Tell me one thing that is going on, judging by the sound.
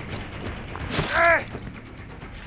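A heavy weapon strikes with a loud thud.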